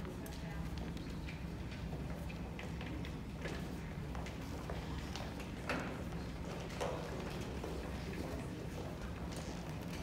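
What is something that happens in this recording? Footsteps shuffle on a wooden stage.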